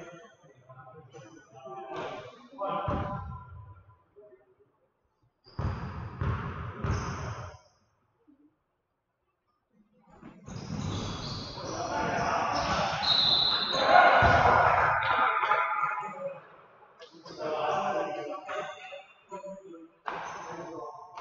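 Men shout and call out to each other in an echoing gym.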